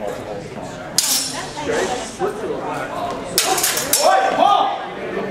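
Wooden swords clack together as fencers clash.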